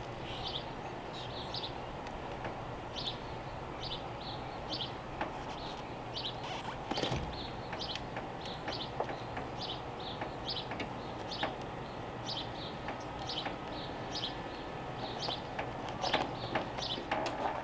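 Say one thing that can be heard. A hand tool clicks and scrapes against a car door panel.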